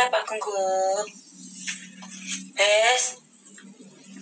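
A young woman speaks in a high, lively voice close to the microphone.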